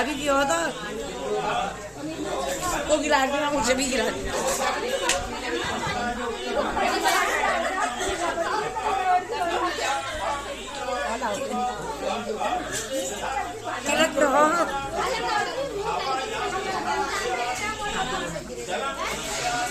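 A crowd of women chatter and talk over one another nearby.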